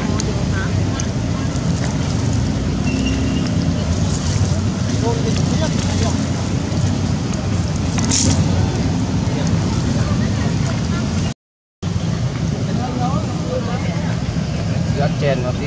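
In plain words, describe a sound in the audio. A young monkey chews food with soft smacking sounds.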